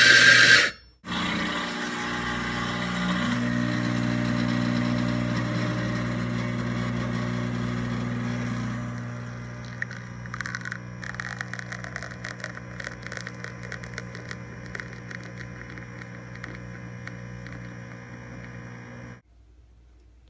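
An espresso machine pump hums steadily.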